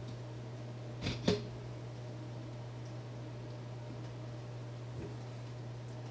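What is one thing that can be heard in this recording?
A lamp arm knocks and clicks as it is moved.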